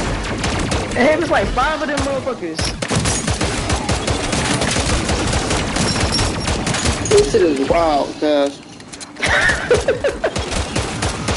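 A young man exclaims loudly into a microphone.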